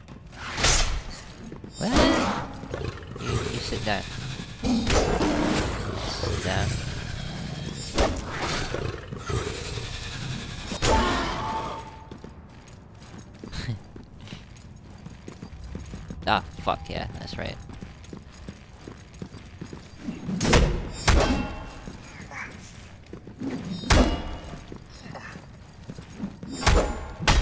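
A blade strikes a creature with heavy thuds.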